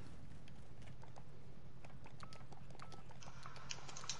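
Keypad buttons beep as a code is entered.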